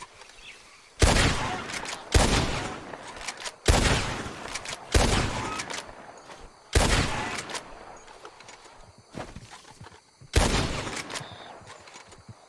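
Rifle shots boom loudly, one after another, each ringing out.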